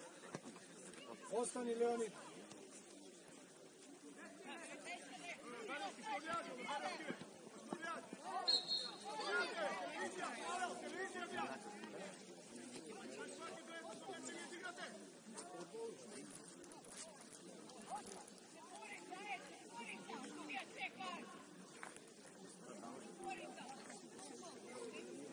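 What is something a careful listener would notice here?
Young players shout and call to each other across an open field, heard from a distance.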